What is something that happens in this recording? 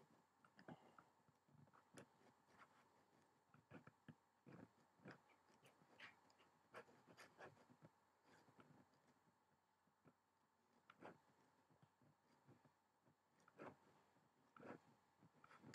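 A palette knife dabs softly against canvas.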